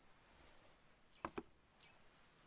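A finger taps on a phone.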